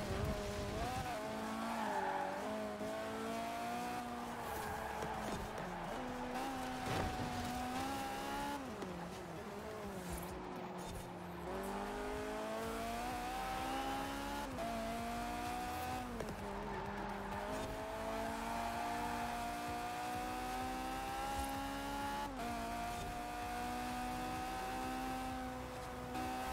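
A car engine roars and revs up and down through the gears.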